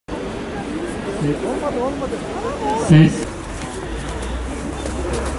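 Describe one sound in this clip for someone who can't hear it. A crowd of people talks outdoors at a distance.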